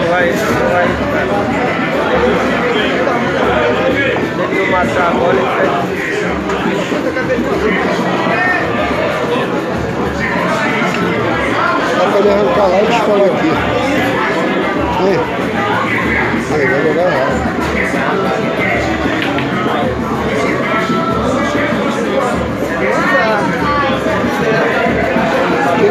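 A crowd of people chatters loudly all around.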